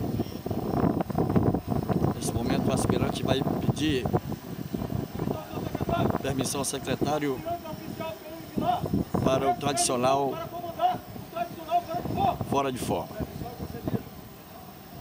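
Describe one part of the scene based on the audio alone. A man shouts commands loudly outdoors.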